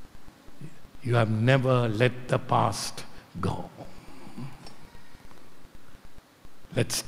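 An elderly man speaks with animation into a microphone.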